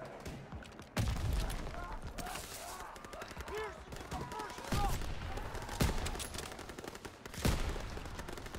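Sharp rifle shots crack out one at a time, with a short echo after each.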